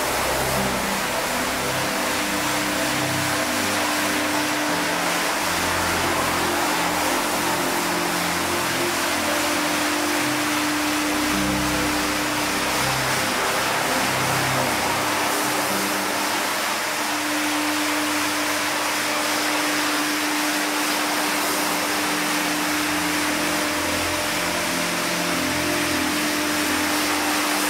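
A rotary floor scrubbing machine hums and swishes its brush over a wet, foamy rug.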